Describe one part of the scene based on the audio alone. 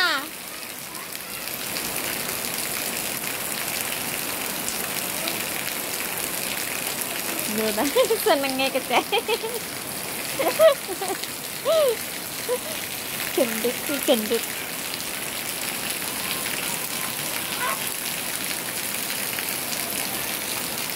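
Steady rain pours down outdoors with a constant hiss.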